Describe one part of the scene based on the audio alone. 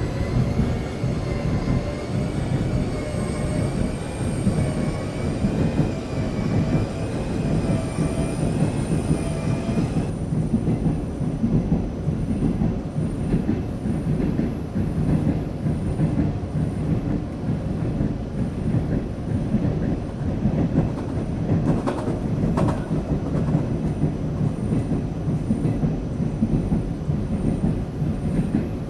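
A train car rumbles steadily along the tracks.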